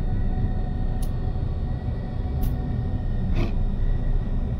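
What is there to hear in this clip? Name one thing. Soft electronic menu chimes click now and then.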